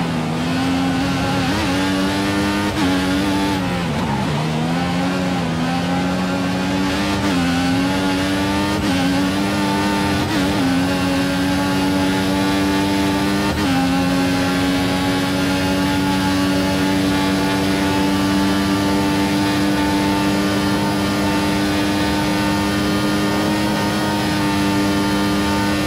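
A racing car engine screams at high revs, dipping briefly as the car slows and then climbing again through quick gear changes.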